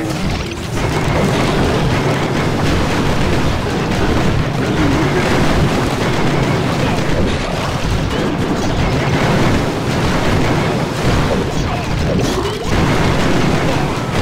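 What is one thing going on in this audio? Explosions and cannon fire boom in a game battle.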